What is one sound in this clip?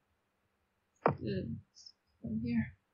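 A young woman speaks briefly over an online call.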